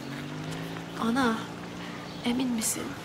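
A young woman speaks anxiously nearby.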